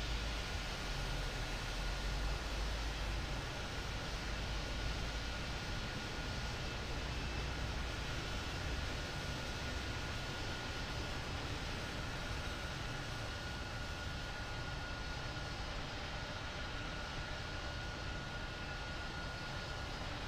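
A jet airliner's engines roar steadily as it rolls along a runway.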